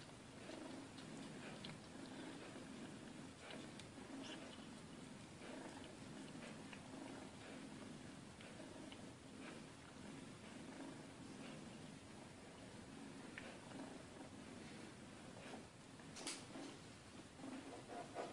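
Two cats scuffle and paw at each other on a carpet.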